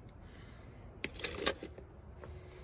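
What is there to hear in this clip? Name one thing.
A plastic toy clatters against a plastic tub.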